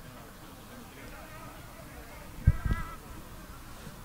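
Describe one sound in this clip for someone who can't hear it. Children call out in the distance across an open field.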